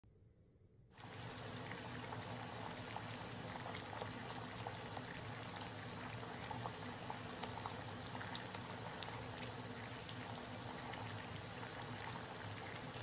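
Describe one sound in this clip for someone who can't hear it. Water sprays steadily from a shower head and splashes onto a tiled floor.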